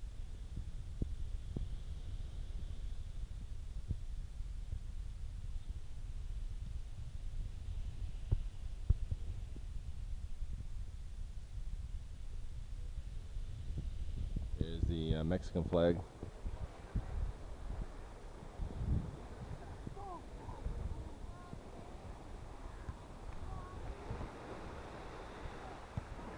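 Wind blows outdoors and rumbles against the microphone.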